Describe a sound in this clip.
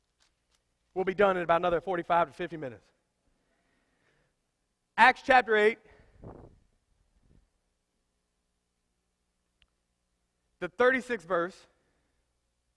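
A man speaks through a microphone in short, emphatic bursts with pauses between them.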